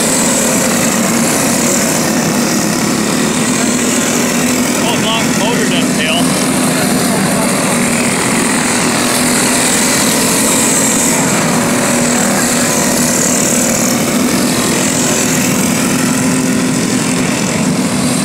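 Kart engines rise and fall in pitch as the karts pass close by.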